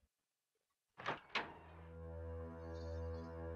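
A heavy door clicks and creaks slowly open.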